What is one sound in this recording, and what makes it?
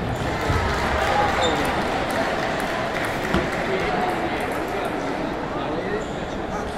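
A crowd chatters steadily in a large echoing hall.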